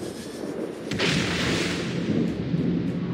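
A shell bursts into the water with a loud splash.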